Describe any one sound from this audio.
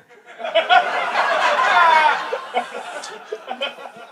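An audience laughs loudly in a room.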